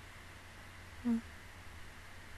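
A young woman briefly murmurs close into a microphone.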